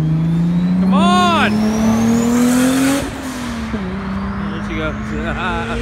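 A car engine roars loudly, revving up in pitch as the car speeds away.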